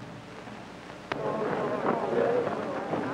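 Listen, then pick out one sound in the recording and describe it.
A crowd cheers and calls out together.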